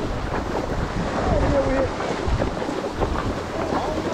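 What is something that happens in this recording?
Horse hooves thud on dirt ground.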